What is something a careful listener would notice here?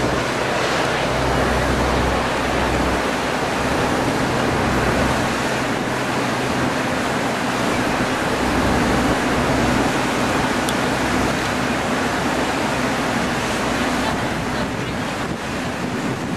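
Aircraft tyres rumble along a runway.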